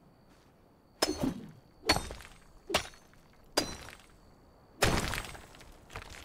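A pickaxe strikes stone with sharp, repeated knocks.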